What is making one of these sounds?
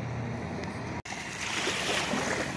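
Small waves wash onto a sandy shore.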